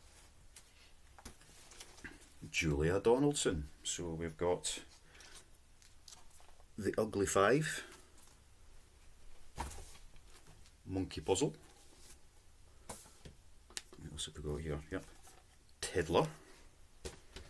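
Book pages rustle and flip.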